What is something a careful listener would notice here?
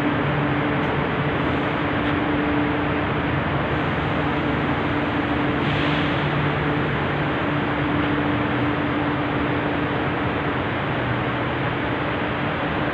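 A train rumbles and clatters steadily along the track.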